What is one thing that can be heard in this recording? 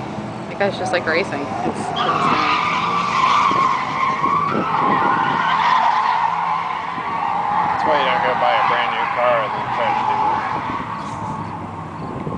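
A car engine revs hard in the distance.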